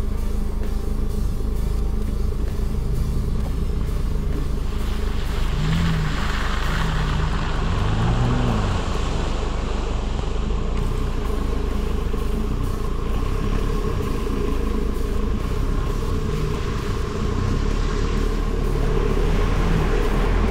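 Tyres crunch and squelch over a muddy dirt track.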